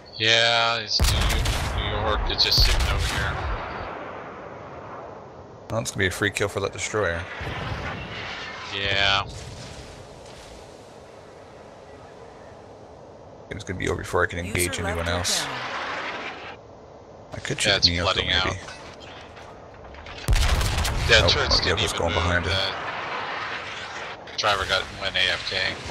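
Heavy naval guns fire with deep, rumbling booms.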